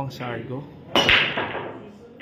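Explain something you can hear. A cue ball smashes into a rack of pool balls with a sharp crack.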